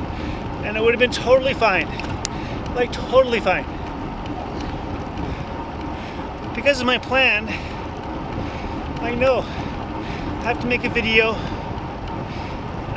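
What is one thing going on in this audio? Wind rushes steadily past a microphone outdoors.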